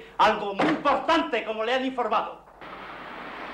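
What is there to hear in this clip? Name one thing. A man shouts angrily at close range.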